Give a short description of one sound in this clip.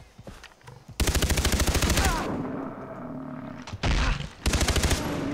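A gun fires in a rapid burst.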